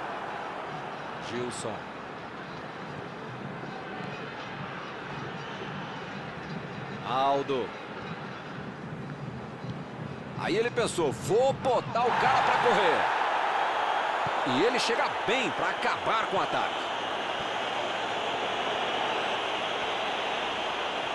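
A stadium crowd murmurs and roars.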